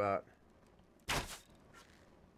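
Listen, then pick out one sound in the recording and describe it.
A bow twangs as an arrow is loosed.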